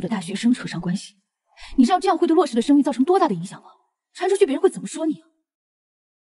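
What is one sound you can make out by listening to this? A young woman speaks close by in an upset, pressing tone.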